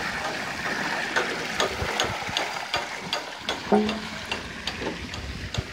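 Water splashes and gushes steadily onto a turning water wheel.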